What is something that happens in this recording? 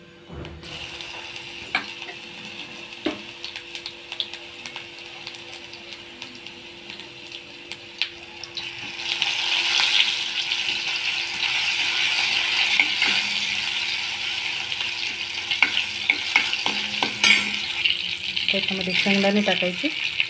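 Hot oil sizzles and crackles in a pan, growing louder partway through.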